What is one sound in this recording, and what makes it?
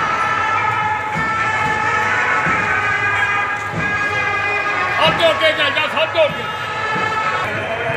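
Loud music plays over loudspeakers outdoors.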